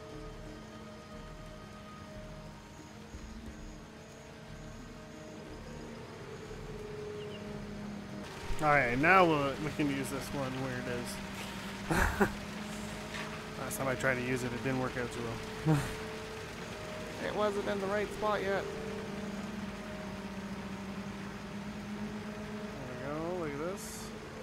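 A heavy truck engine idles with a steady low hum.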